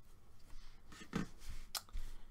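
A crochet hook taps down onto a table.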